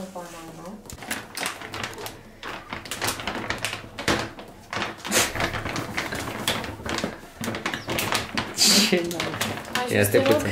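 A plastic bag crinkles and rustles as it is opened.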